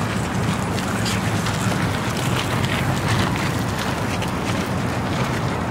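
Footsteps crunch on gravel close by.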